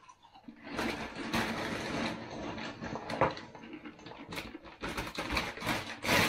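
Snacks rattle as they pour into a bowl.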